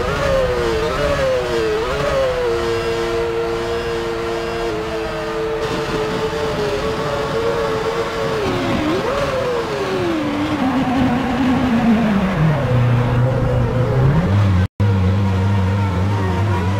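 A racing car engine hums at high revs, shifting pitch between gears, then drops to a low idle.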